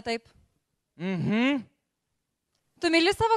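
A young woman speaks into a microphone on a loudspeaker.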